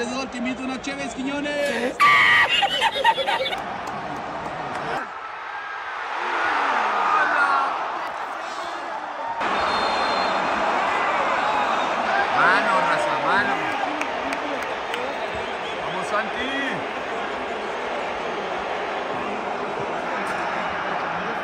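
A large stadium crowd roars and murmurs.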